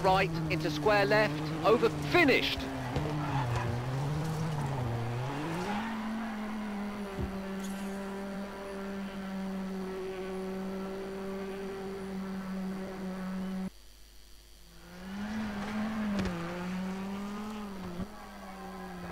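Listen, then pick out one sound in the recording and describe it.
A rally car engine revs hard, rising and dropping as the gears change.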